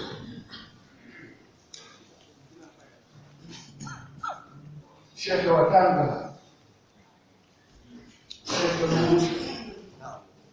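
A crowd of men murmurs.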